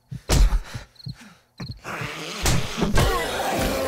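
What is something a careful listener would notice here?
A zombie snarls and growls close by.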